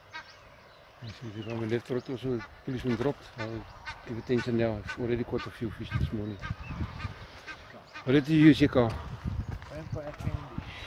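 An elderly man talks outdoors.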